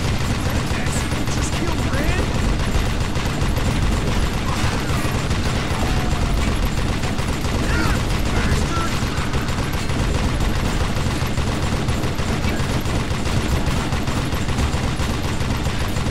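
A rotary machine gun fires in a rapid, unbroken rattle.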